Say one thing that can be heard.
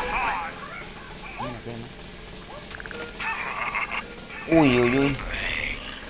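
A game slot machine spins and stops its reels with electronic jingles and chimes.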